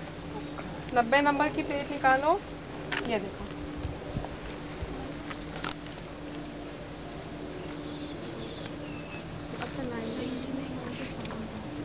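Young women talk and call out nearby, outdoors.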